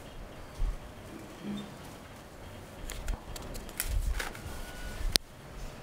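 Papers rustle and shuffle close by.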